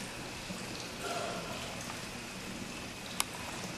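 An elderly woman begins speaking through a microphone in a large echoing hall.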